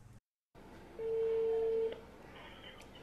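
A phone on speaker gives a steady ringing tone.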